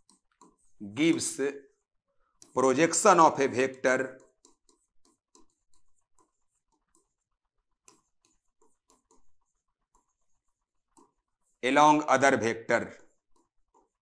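A man speaks calmly in short phrases, close to a microphone.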